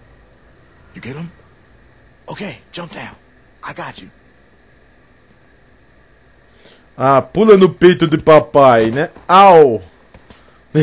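A man speaks in a low, calm voice.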